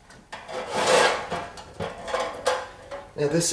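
A spatula scrapes around a plastic bowl.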